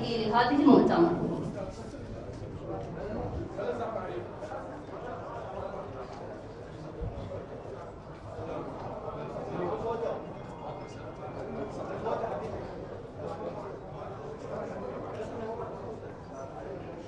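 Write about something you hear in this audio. A crowd murmurs quietly in a large room.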